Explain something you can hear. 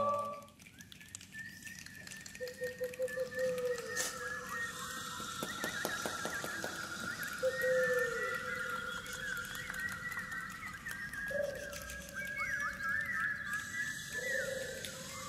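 Birds chirp and call in the trees.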